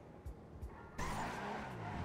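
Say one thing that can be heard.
A hot rod lands hard on the road after a jump.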